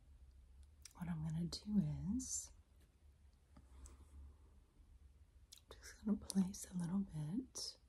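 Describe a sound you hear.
A woman speaks softly and slowly close to a microphone.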